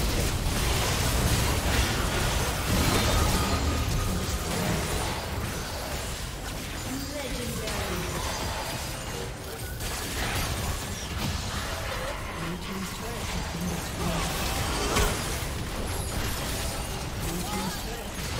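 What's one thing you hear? Magic spells and blasts crackle and boom in a busy game battle.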